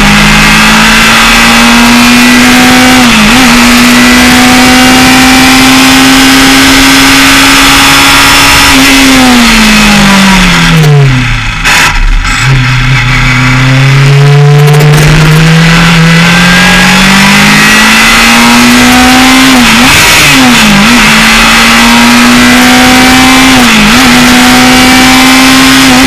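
A race car engine screams loudly close by, dropping in pitch as it slows for a corner and rising again as it speeds away, with quick gear shifts.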